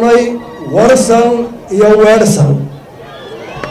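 A large crowd chants loudly outdoors.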